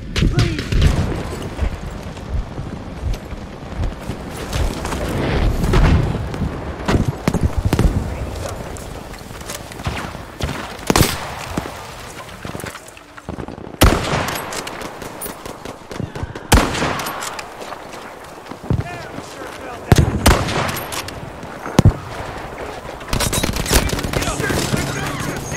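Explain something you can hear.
Explosions rumble and boom in the distance.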